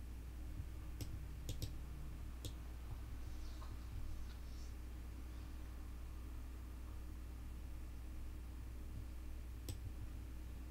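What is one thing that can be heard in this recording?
A short sharp click sounds as a game piece moves.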